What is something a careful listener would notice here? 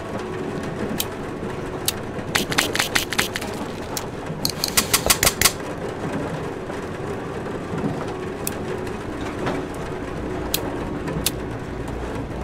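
Soft clicks tick in quick runs.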